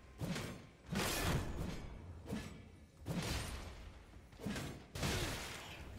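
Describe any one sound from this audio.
Heavy weapons swing and clash in a fierce fight.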